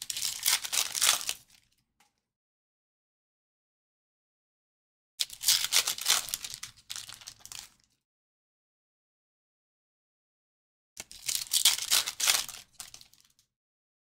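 A foil card pack crinkles and tears open close by.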